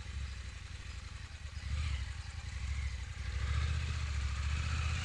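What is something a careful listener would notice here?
A dirt bike engine rumbles and grows louder as it approaches.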